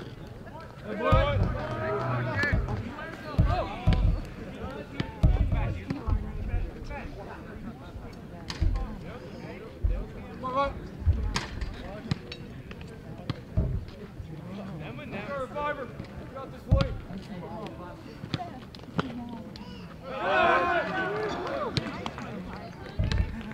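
Young men shout and cheer from close by outdoors.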